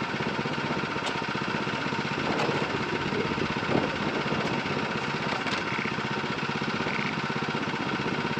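An engine idles with a steady rapid chugging.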